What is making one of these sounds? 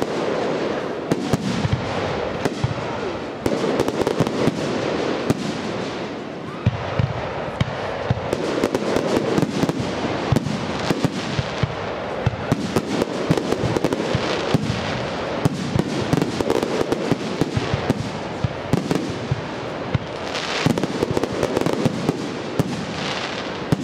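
Fireworks crackle and fizzle after bursting.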